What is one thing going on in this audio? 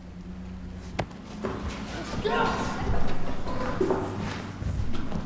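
Young men scuffle and shove each other.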